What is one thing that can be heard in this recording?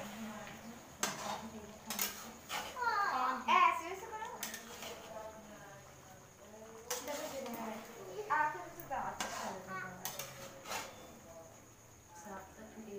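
A metal ladle scrapes and knocks against a pan while stirring.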